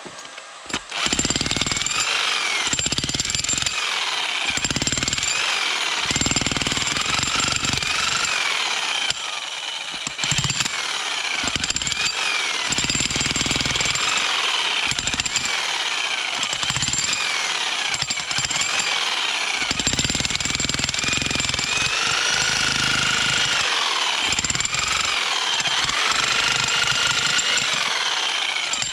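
A jackhammer pounds rapidly into stony ground close by.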